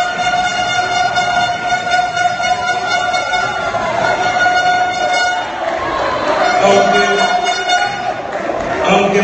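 A man speaks calmly into a microphone, heard over loudspeakers in an echoing hall.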